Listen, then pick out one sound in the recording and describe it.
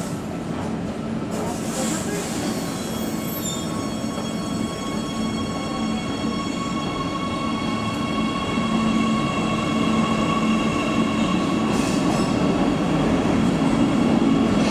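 A metro train rumbles along an underground platform, gathering speed.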